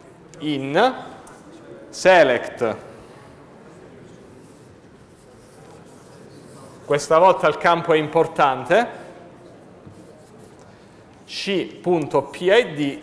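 A man speaks calmly in a room with some echo.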